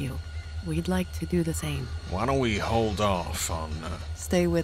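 A woman speaks softly and warmly.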